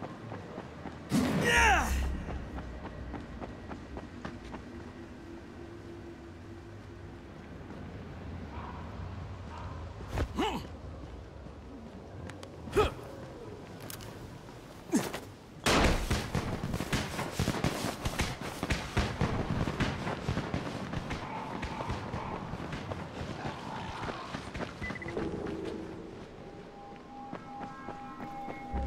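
Footsteps tread on a paved road.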